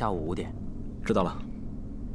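A young man answers briefly.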